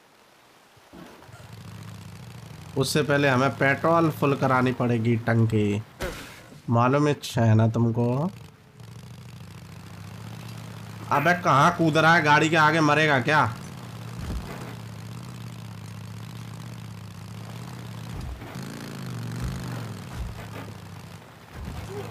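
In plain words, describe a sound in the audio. A motorcycle engine starts and rumbles steadily as the motorcycle rides along.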